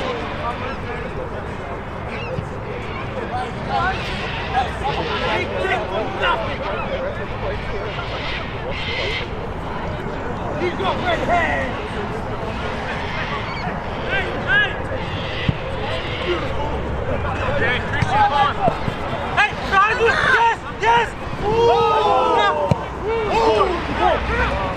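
Young players shout and call out to each other across an open field.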